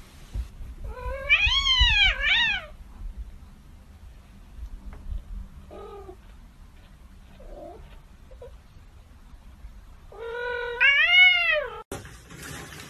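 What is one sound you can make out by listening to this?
A cat meows loudly and drawn out.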